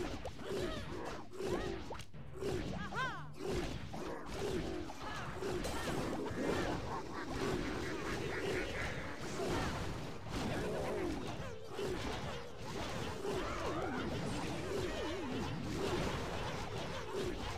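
Battle sound effects clash and burst from a game.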